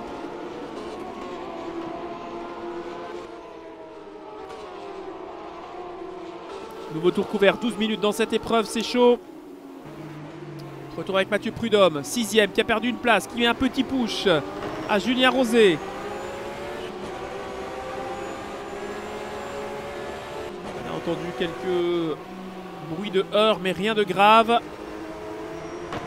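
A racing car engine roars, rising and falling in pitch as it shifts gears.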